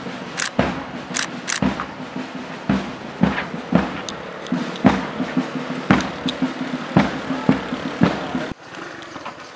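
Boots tramp in step as a group marches on pavement.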